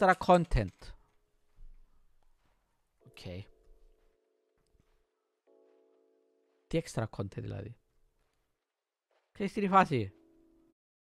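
A man speaks close into a microphone in short bursts with pauses.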